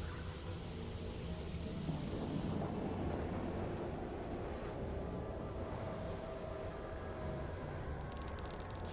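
An energy beam crackles and hums.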